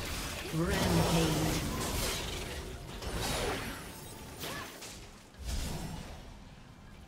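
Magic spells whoosh and burst in quick flurries.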